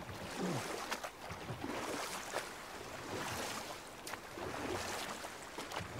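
Water laps and splashes as oars row a wooden boat.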